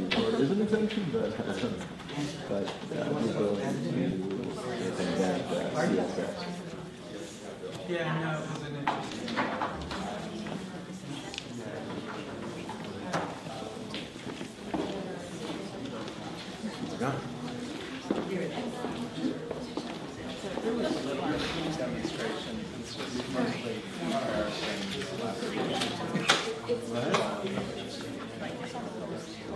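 Several men and women chat at once in a large room.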